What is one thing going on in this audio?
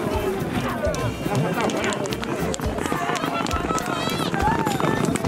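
A crowd of men shout and cheer outdoors.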